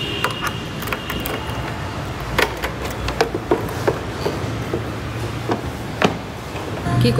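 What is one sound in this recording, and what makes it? A key clicks in a scooter's ignition.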